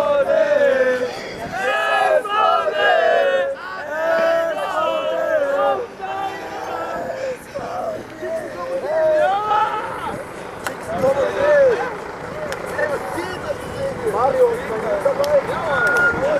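A group of young men sing and chant together outdoors.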